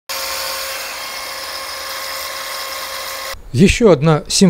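An angle grinder whines steadily, grinding metal up close.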